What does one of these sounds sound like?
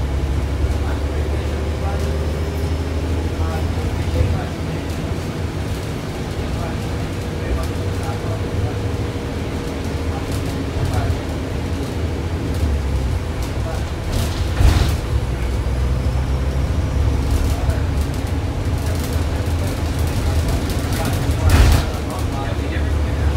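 Train wheels squeal and clatter on the rails.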